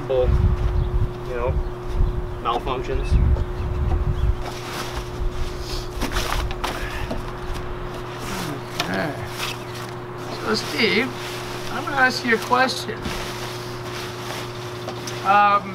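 Nylon fabric rustles and crinkles as it is folded and gathered.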